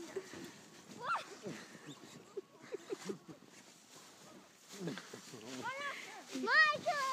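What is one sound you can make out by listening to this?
A young child squeals and laughs excitedly.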